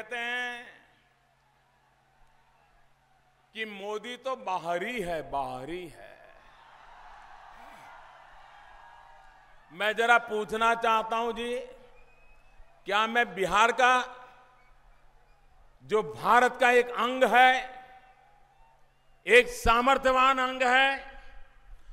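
A man speaks forcefully through loudspeakers, in bursts with pauses, outdoors.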